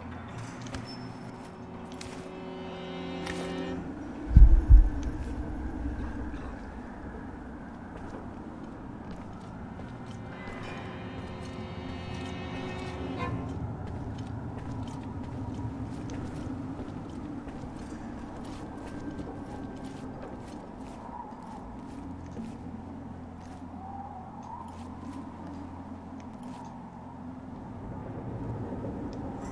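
Footsteps thud on wooden boards and stone steps.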